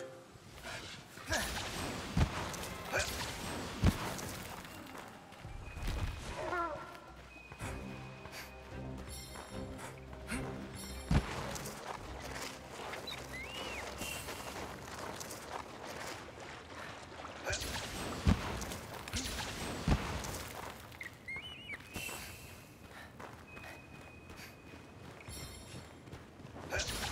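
Footsteps crunch on rocky ground in an echoing cave.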